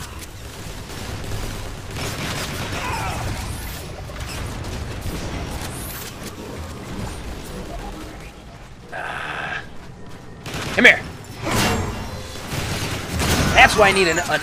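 Rapid gunfire blasts ring out.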